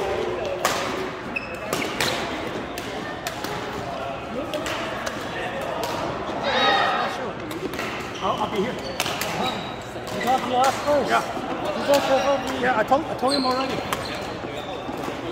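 Badminton rackets smack a shuttlecock back and forth in an echoing hall.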